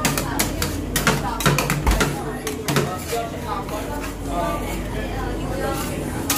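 Metal spatulas scrape and tap against a metal plate.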